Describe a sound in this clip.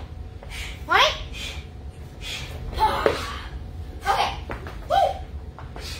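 A young boy shouts and calls out excitedly close by.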